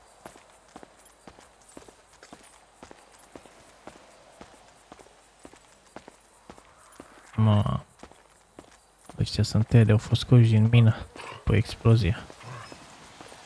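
Footsteps scuff on paving.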